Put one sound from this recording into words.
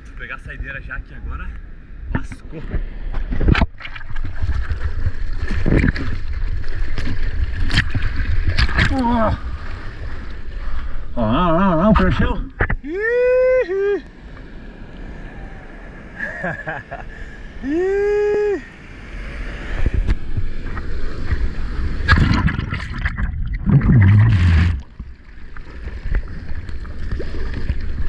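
Ocean waves break and rumble.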